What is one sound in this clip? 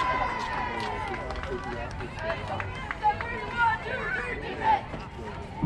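A crowd of spectators and players chatters and calls out nearby, outdoors.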